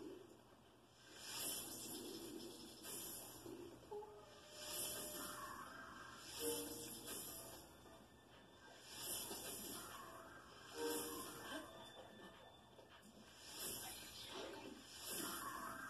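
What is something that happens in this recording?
Video game combat sound effects burst from television speakers.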